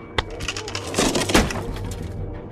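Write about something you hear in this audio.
A metal shelf topples and crashes to the floor.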